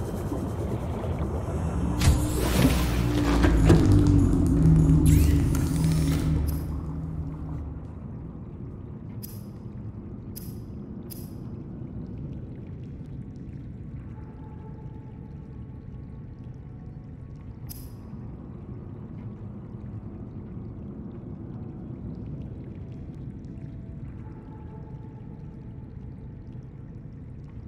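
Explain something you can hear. A low steady hum fills the space.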